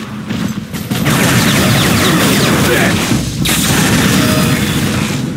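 A gun fires a rapid stream of energy shots.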